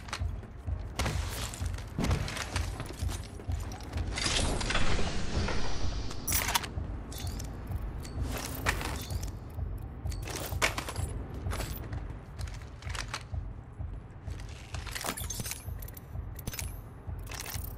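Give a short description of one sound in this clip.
Quick footsteps thud on metal floors.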